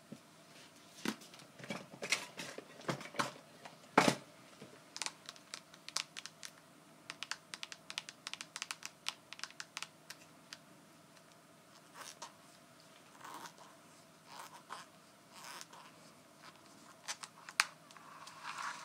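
Fingernails tap and scratch on a small padded object, close up.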